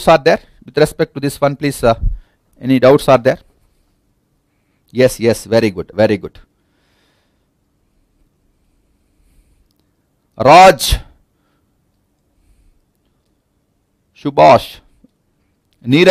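A man speaks in bursts through a microphone, explaining calmly with pauses.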